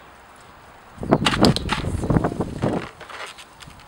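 An empty plastic bottle crinkles and crackles under a hand.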